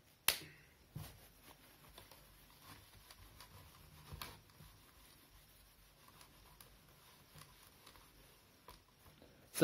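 A cloth rubs and wipes across a whiteboard.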